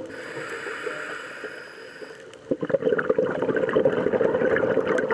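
Water crackles and murmurs, heard muffled underwater.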